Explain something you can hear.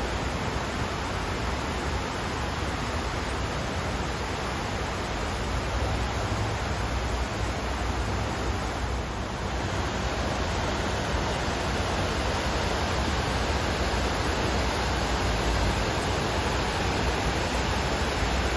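Water pours down a tall wall in a loud, steady rush.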